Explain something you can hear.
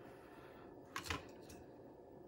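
A small circuit board is handled and taps lightly on a table.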